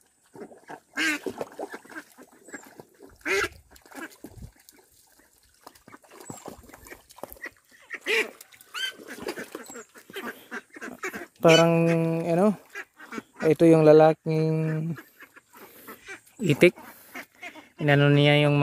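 Ducks quack loudly nearby.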